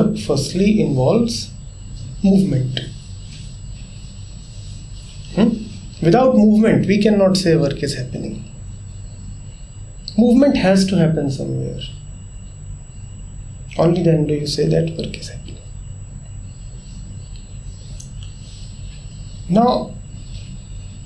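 A man speaks calmly and thoughtfully into a nearby microphone, with pauses between phrases.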